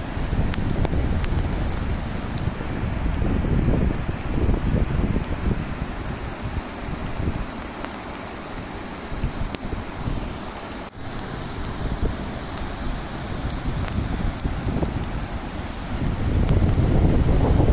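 Floodwater rushes and roars loudly nearby.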